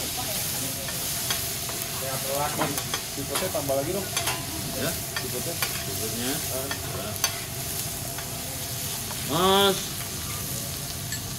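Meat sizzles loudly on a hot griddle.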